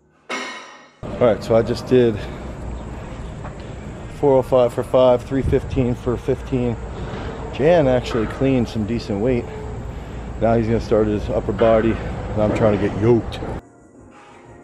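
A man talks close by, calmly and steadily.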